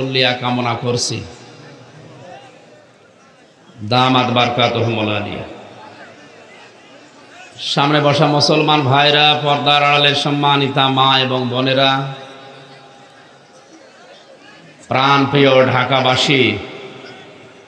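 A middle-aged man preaches forcefully into a microphone in bursts, his voice echoing through loudspeakers.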